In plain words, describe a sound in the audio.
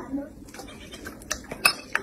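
A baby laughs close by.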